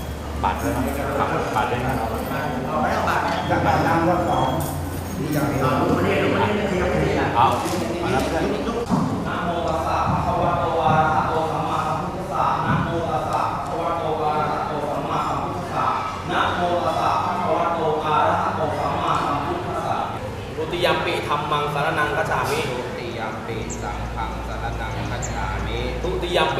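Monks chant together in a steady low drone, in an echoing hall.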